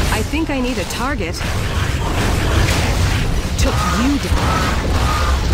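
A fiery energy beam blasts and roars.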